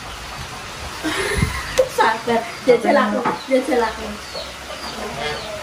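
A young woman talks and laughs nearby.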